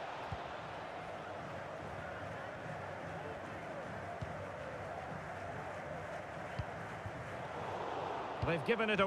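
A stadium crowd murmurs and chants steadily.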